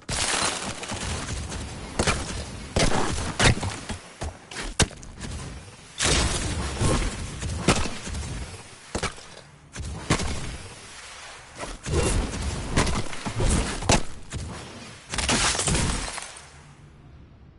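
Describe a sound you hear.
Wooden building pieces snap and clatter into place in quick bursts.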